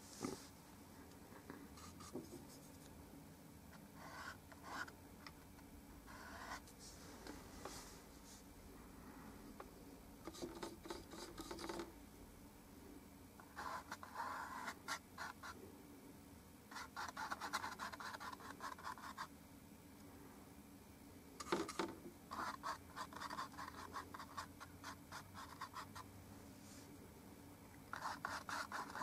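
A brush scrubs and taps softly against a canvas in short bursts.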